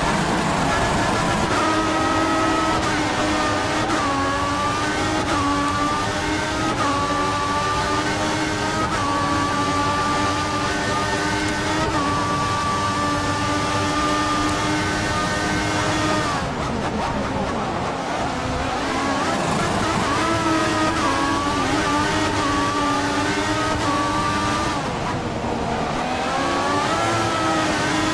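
A racing car engine screams at high revs, rising and dropping in pitch as it shifts gears.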